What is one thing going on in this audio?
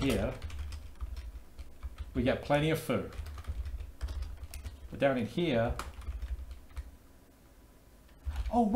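Keys clack on a keyboard.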